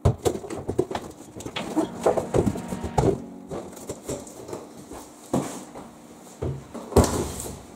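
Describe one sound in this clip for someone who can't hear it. A cardboard box scrapes and rustles as it is moved.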